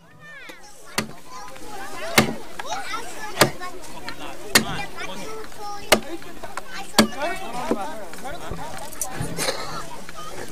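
An axe chops into wood with sharp, regular blows.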